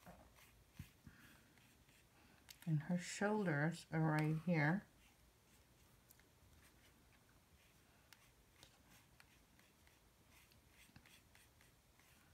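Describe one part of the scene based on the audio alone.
A paintbrush dabs and scratches softly on paper.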